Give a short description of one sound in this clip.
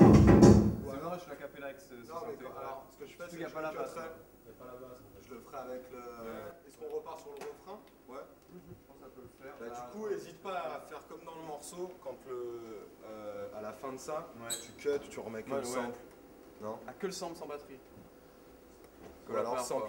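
A young man talks calmly and with animation, close by.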